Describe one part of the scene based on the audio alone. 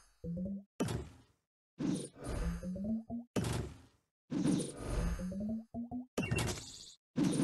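Game effects pop and chime as pieces burst.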